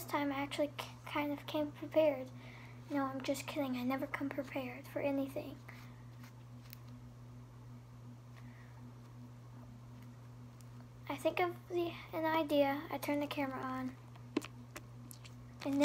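Sticky slime squelches and pops between fingers.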